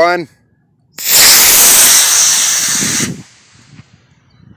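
A model rocket motor ignites with a loud rushing roar that fades as it climbs away.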